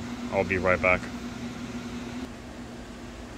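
Cooling fans whir steadily.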